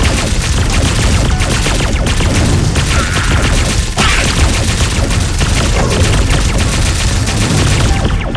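Explosions burst with deep rumbling booms.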